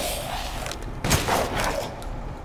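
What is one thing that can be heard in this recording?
A gun fires a loud shot.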